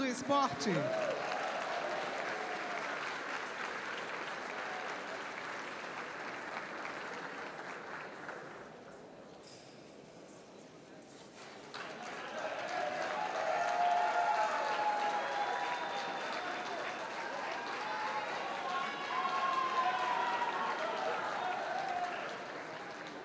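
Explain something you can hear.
A large crowd applauds in a big echoing hall.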